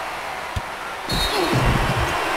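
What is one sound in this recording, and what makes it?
A referee's whistle blows sharply.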